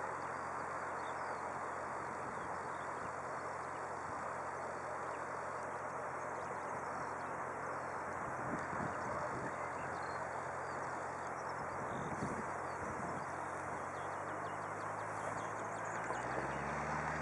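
A jet airliner roars along a runway in the distance.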